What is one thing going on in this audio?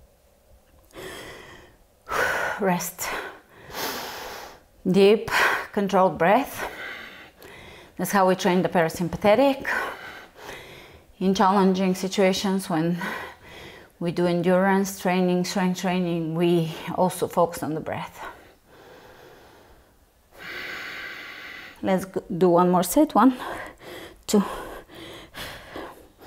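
A woman speaks calmly and steadily, giving instructions close to a microphone.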